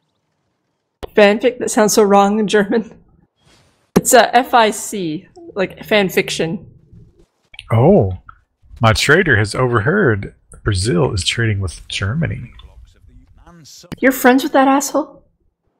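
A man talks casually into a microphone, heard over an online call.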